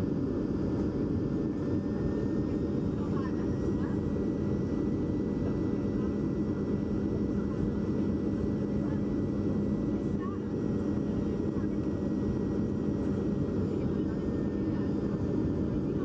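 A plane's engines roar steadily from inside the cabin.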